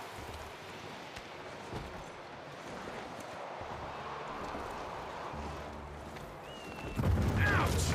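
Footsteps scrape and crunch on dry rocky ground.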